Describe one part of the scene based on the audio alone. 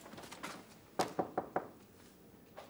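A man knocks on a wooden door.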